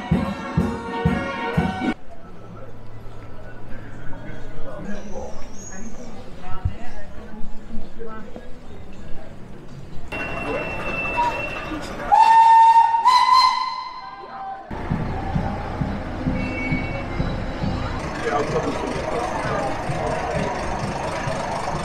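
A crowd of people chatters on a busy street outdoors.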